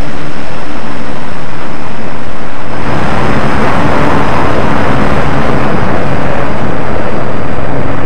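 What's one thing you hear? A jet engine whines steadily at high pitch.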